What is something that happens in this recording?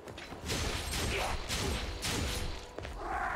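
A blade whooshes and strikes with heavy impacts.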